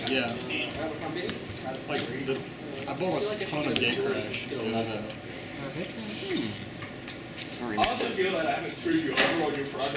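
Cards riffle and shuffle in a player's hands.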